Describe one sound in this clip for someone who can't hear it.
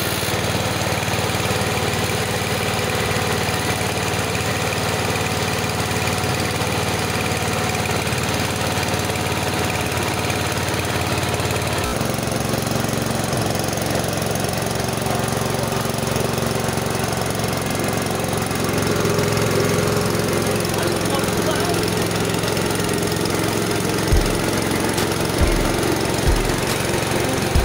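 Grain rattles and hisses through a milling machine.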